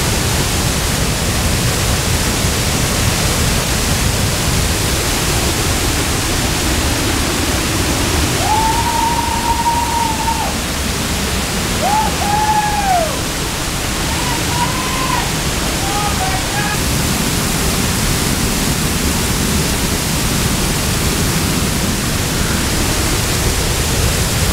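A waterfall roars loudly and steadily close by.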